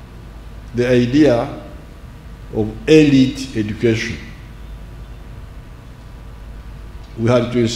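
An elderly man speaks slowly and deliberately through a microphone and loudspeakers, with pauses between phrases.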